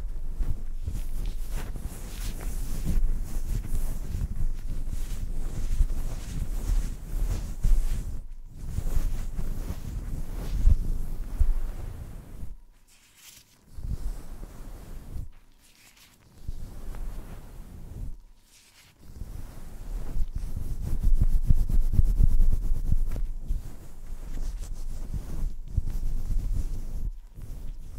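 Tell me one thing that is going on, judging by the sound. Gloved fingers rub and scratch on a furry microphone cover, close up.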